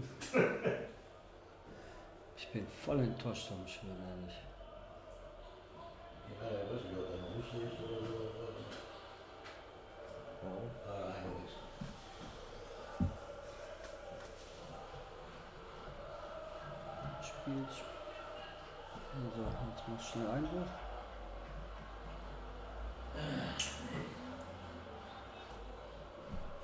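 A second man answers in conversation nearby.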